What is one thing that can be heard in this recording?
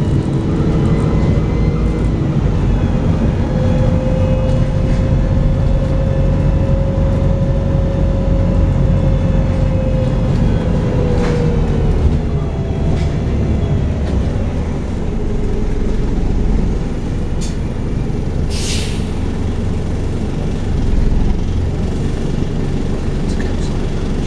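Cars pass by close outside on the road.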